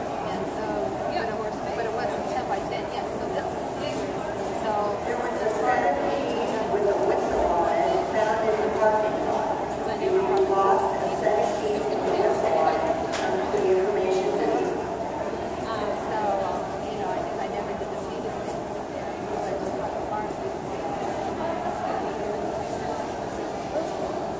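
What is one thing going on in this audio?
A pencil scratches and shades on paper.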